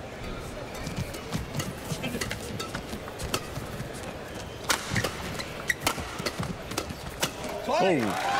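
A shuttlecock is struck back and forth with sharp racket smacks.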